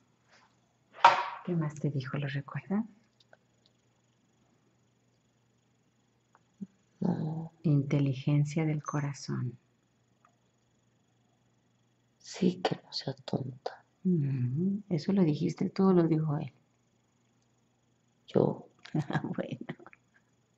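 A young woman speaks softly and close by, in short bursts with pauses.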